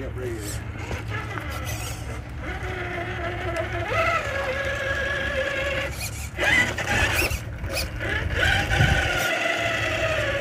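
Rubber tyres crunch over gravel and rock.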